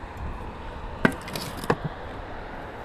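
A shovel clanks against a wheelbarrow.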